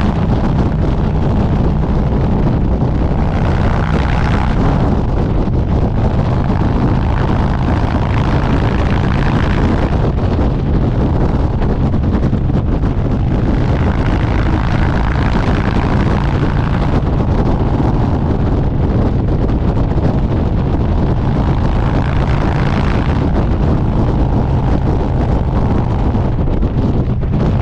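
Wind rushes loudly past, swelling and easing.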